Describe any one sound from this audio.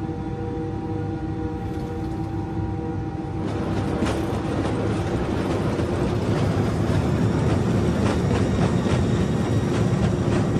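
Wheels rumble and thump over the runway.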